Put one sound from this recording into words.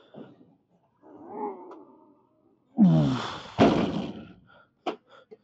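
A man grunts and breathes hard with effort.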